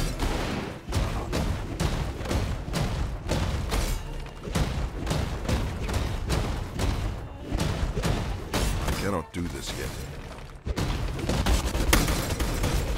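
Magic blasts crackle and boom in quick repeated bursts.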